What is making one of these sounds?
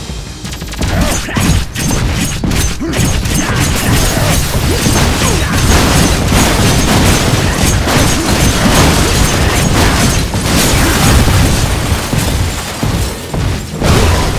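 Heavy blows thud in a brawl.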